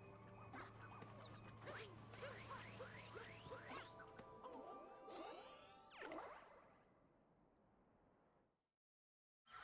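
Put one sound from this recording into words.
Video game music plays with chimes and jingles.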